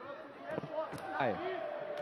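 A kick lands on a body with a dull thud.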